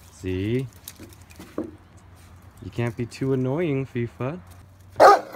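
A puppy whines and yelps nearby.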